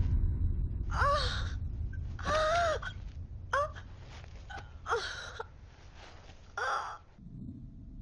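A young woman gasps and groans in pain.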